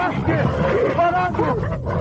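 A young boy screams and cries.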